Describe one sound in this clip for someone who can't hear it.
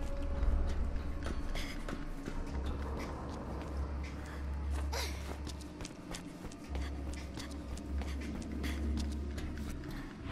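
Footsteps clatter on a metal walkway.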